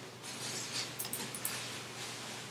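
A mouse clicks a few times.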